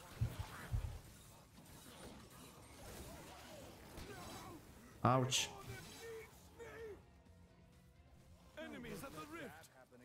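Fiery explosions boom.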